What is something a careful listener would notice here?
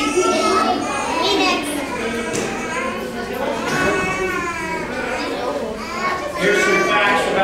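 Many children chatter and talk at once.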